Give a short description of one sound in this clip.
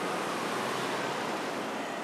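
A motorcycle rides past.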